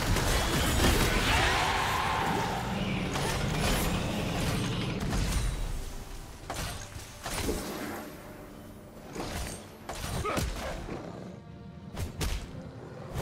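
Spell effects whoosh and crackle in a fast game fight.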